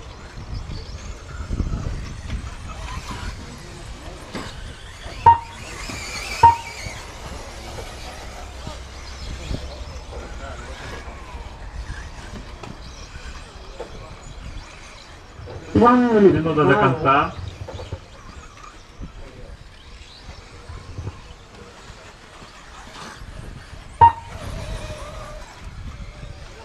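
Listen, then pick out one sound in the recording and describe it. Small model cars whine and buzz around a dirt track.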